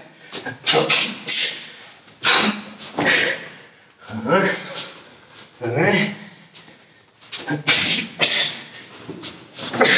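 Clothing snaps sharply as a man strikes the air.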